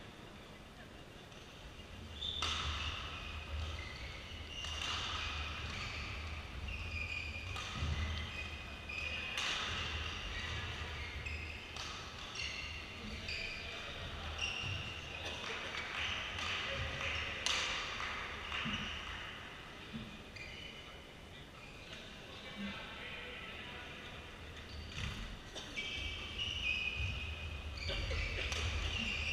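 Footsteps thud and patter quickly on a court floor.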